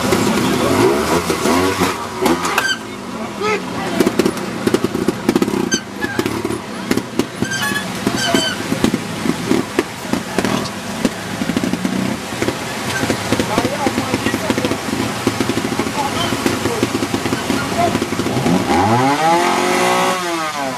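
A motorcycle engine revs and sputters up close.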